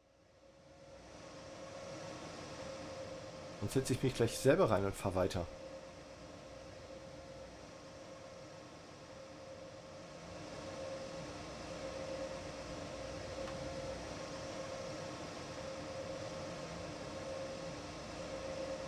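A locomotive engine hums steadily nearby.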